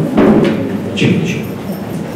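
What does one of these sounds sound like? A younger man speaks briefly into a microphone.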